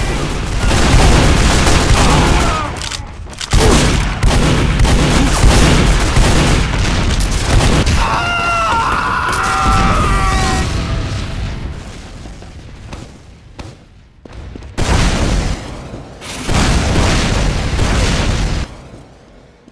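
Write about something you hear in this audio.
Gunfire and explosions from a game crackle and boom loudly.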